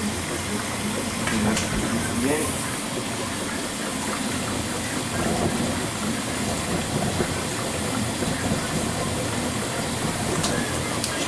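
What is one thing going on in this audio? A washing machine drum turns with a steady churning hum.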